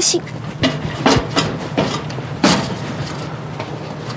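Footsteps clang on metal steps.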